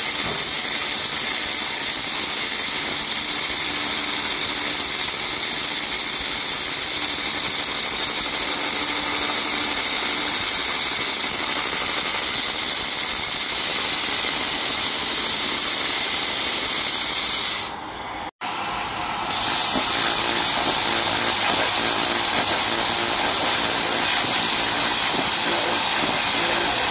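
A laser hisses steadily against a metal plate.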